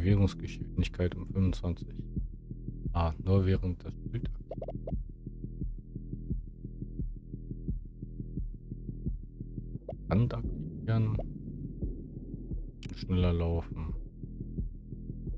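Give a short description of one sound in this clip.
Soft electronic music plays steadily.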